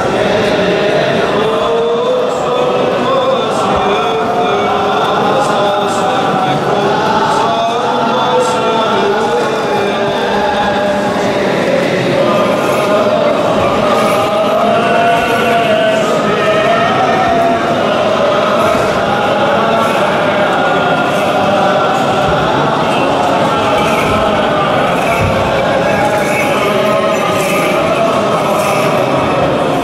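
A group of men chants steadily in unison, echoing through a large stone hall.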